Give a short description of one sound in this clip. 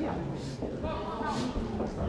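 A man calls out commands at close range.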